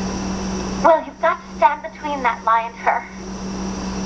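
A middle-aged woman speaks with feeling, heard through a television loudspeaker.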